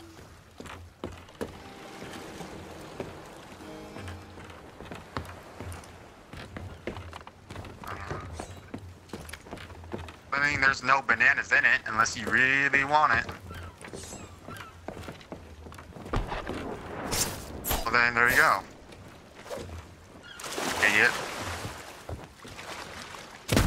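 Waves lap gently against a wooden pier.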